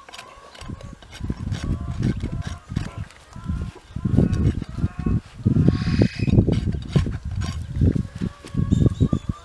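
A rasp scrapes a horse's hoof in quick, rough strokes.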